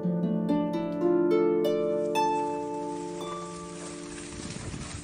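A harp plays a gentle melody of plucked, ringing notes.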